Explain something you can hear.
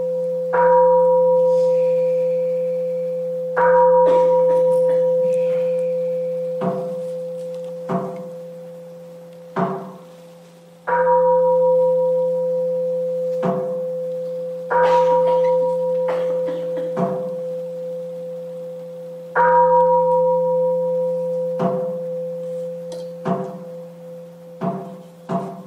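A bowl bell is struck again and again, each stroke ringing out and slowly fading.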